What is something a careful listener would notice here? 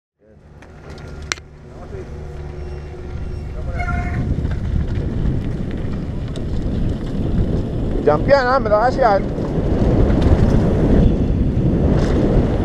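Bike tyres crunch and rattle over loose gravel, growing louder with speed.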